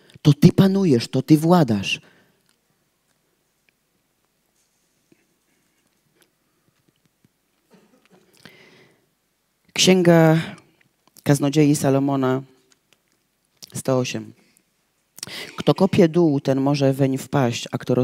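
A young woman reads aloud through a microphone, pausing between phrases.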